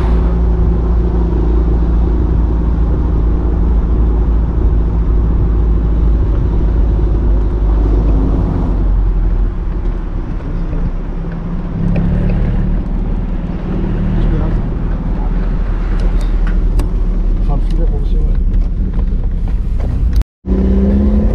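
Wind rushes past an open car.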